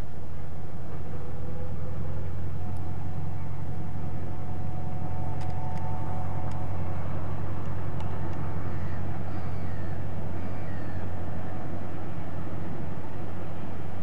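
Freight wagons clatter along the rails.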